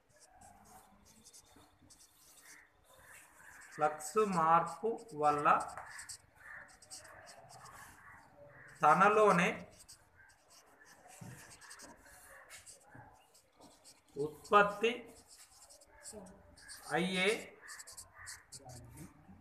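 A marker scratches and squeaks on paper.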